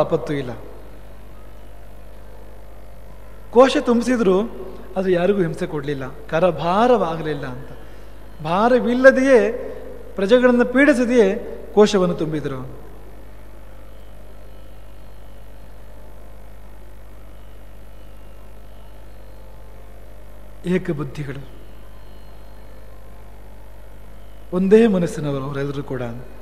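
A man sings and chants with feeling into a microphone, with pauses between phrases.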